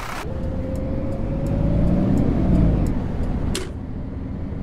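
A bus engine revs up briefly.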